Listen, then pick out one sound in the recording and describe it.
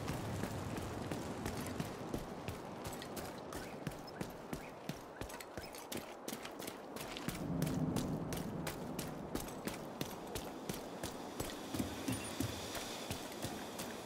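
Footsteps thud steadily on hard ground.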